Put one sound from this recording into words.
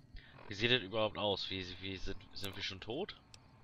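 A small electronic device clicks as its menu pages switch.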